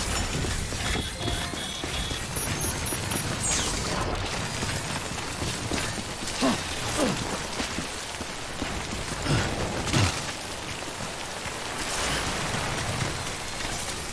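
Footsteps crunch over loose rubble and gravel.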